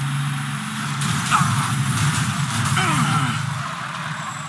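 Tyres screech as a vehicle skids around a bend.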